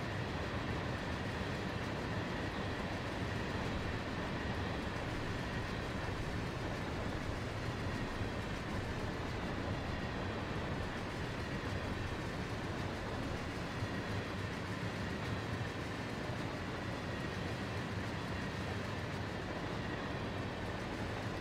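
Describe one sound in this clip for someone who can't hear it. A long freight train rumbles and clatters steadily past on the rails.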